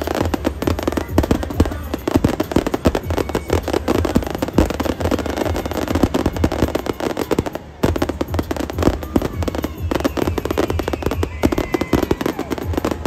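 Firework shells bang loudly.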